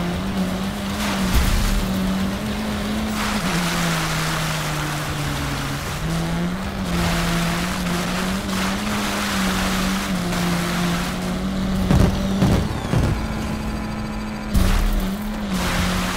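A rally car engine drones steadily at high revs, shifting pitch with gear changes.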